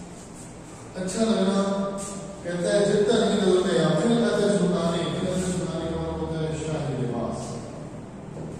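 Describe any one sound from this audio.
A man speaks calmly to a room, close by.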